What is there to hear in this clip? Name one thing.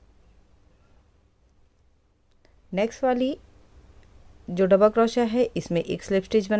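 Yarn rustles softly as a crochet hook pulls it through stitches.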